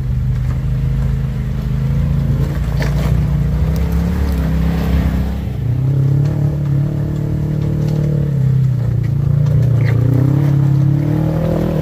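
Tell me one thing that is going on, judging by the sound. Rocks crunch and knock under tyres on rough ground.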